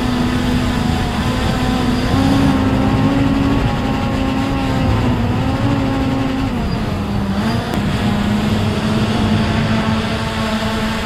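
A drone's propellers whine steadily close by, rising and dipping slightly in pitch.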